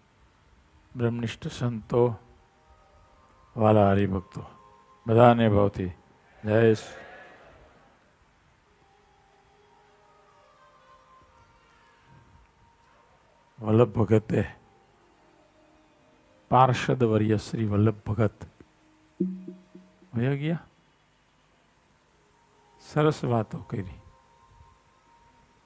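A middle-aged man speaks calmly into a microphone in short phrases with long pauses.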